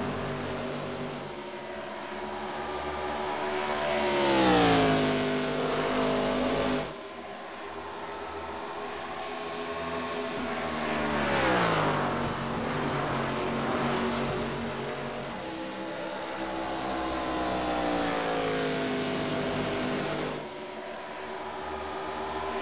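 Race car engines roar at high speed, their pitch dropping as they pass by.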